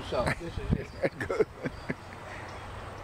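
A middle-aged man speaks casually, close by.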